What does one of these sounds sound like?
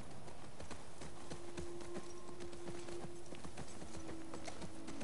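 Tall grass rustles and swishes against the horses' legs.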